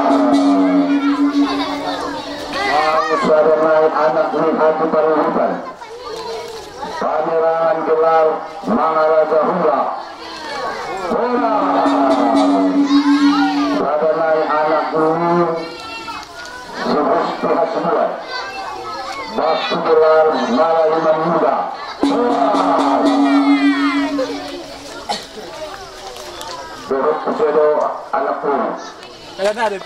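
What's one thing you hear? A man chants in a long, rising and falling melody through a microphone and loudspeaker.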